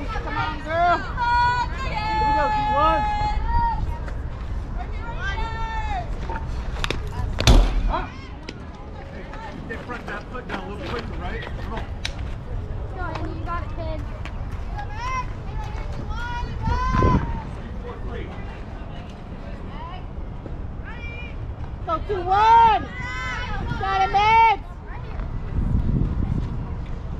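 Young women shout and cheer loudly across an open field.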